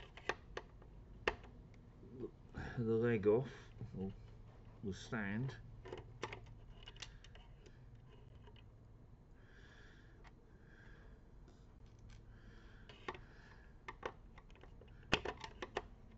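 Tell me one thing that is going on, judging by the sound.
A screwdriver clicks and scrapes against metal.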